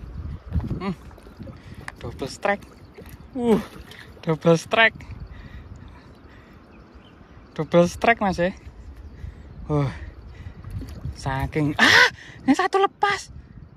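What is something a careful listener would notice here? A hooked fish splashes and thrashes at the water's surface.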